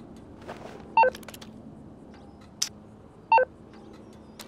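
A phone beeps with short taps.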